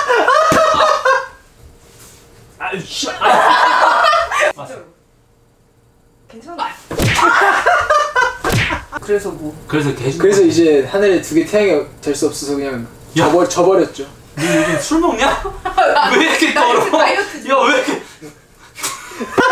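A young woman laughs and talks with animation close by.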